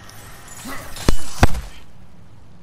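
An axe strikes with a heavy, sudden thud.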